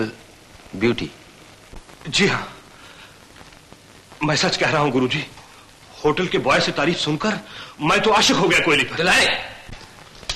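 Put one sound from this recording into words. A woman answers with emotion, heard through an old film soundtrack.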